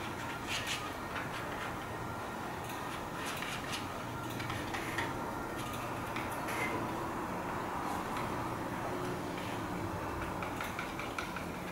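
A palette knife scrapes thick paint across paper.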